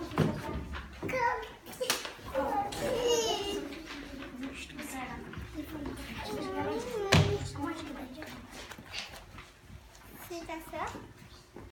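A child speaks aloud in an echoing hall.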